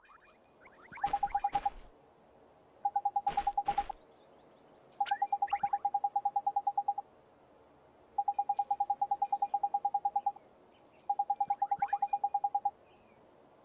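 Rapid soft beeps tick in short bursts.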